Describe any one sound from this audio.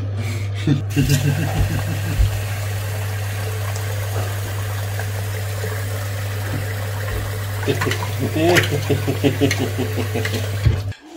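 Water pours from a tap into a sink and splashes.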